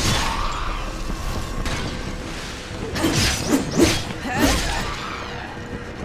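Weapons clash and strike in quick blows.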